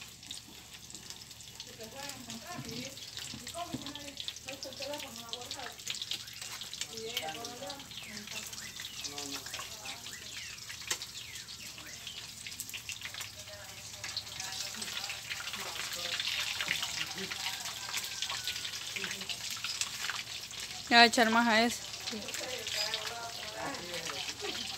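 Food sizzles in hot oil in a frying pan.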